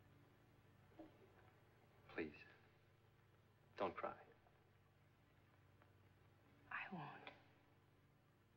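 A woman speaks softly and briefly, close by.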